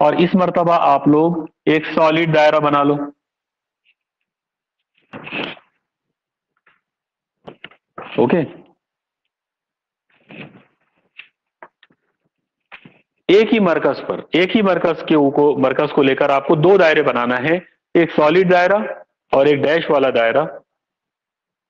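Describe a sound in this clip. A middle-aged man speaks calmly and clearly, close by, with pauses.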